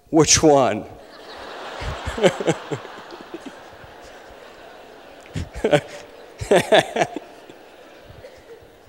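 A large audience laughs.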